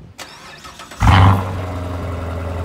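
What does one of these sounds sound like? A sports car engine starts with a loud roar.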